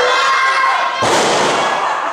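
A body slams hard onto a wrestling mat.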